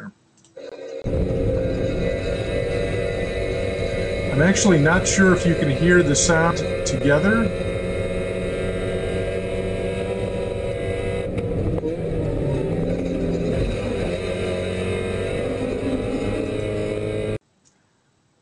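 A car engine roars loudly from inside the cabin, rising and falling as the gears change.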